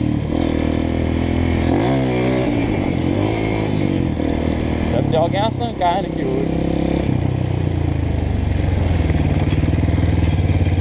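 A motorcycle engine hums steadily and revs up and down.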